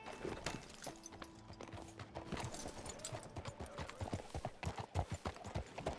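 Horse hooves clop on a muddy street.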